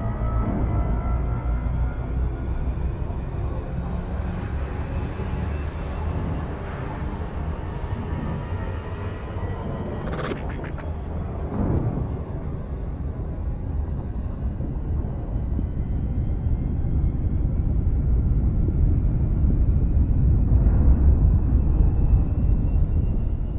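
A deep engine rumble hums steadily throughout.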